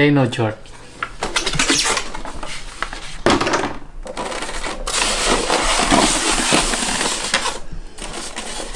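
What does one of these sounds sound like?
A paper booklet rustles and crinkles.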